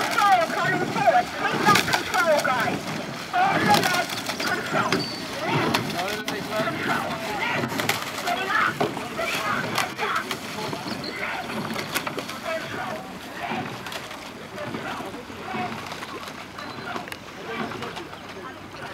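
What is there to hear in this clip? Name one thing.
Oars splash and knock in a steady rhythm.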